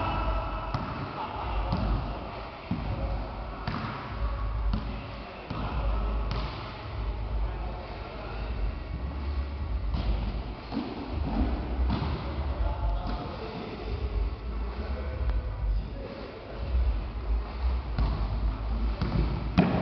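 A basketball bounces on a wooden floor, echoing in a large hall.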